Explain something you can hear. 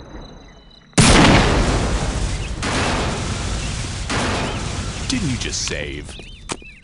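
A huge explosion booms and rumbles slowly away.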